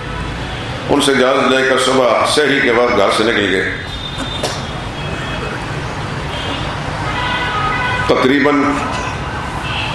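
An elderly man speaks calmly into a microphone, heard through a loudspeaker in an echoing hall.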